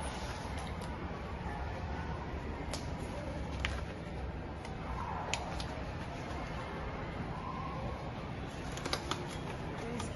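Small plastic items clatter softly as a man handles them.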